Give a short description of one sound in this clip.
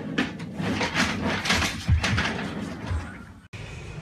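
A chair crashes onto the floor with a loud thud.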